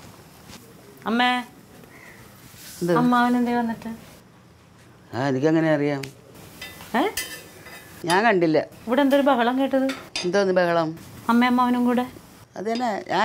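An elderly woman speaks with animation, close by.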